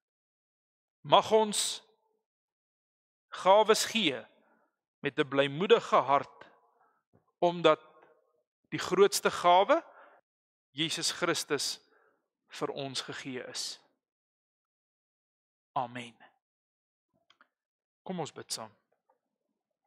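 A man speaks calmly and slowly into a close microphone, with pauses between phrases.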